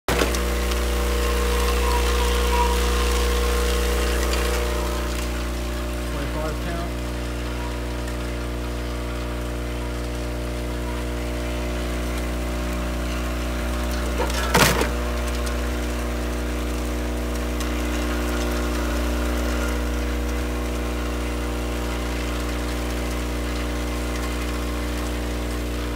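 A packaging machine hums and whirs steadily.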